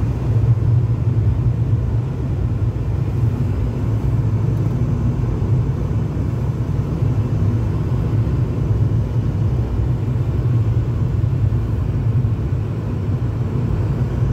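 Tyres roll on a wet road with a low rumble.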